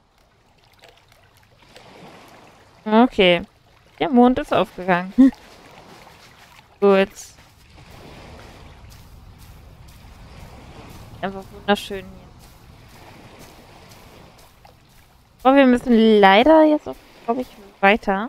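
Waves wash softly onto a shore.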